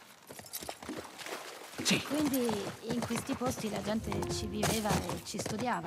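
A horse's hooves clop on the ground.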